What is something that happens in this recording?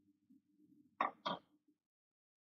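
Metal clinks as greens are tipped from a bowl into a pan.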